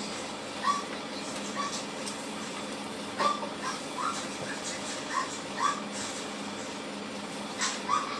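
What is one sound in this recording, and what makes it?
A broom sweeps with scratchy strokes across a hard floor.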